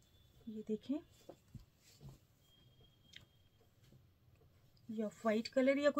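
Fabric rustles softly as it is handled.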